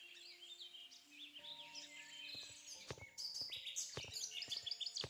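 Light footsteps tap on stone tiles.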